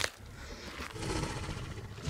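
A large dinosaur roars.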